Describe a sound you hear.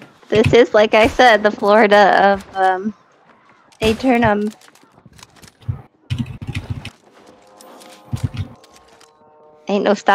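Energy guns fire in quick bursts.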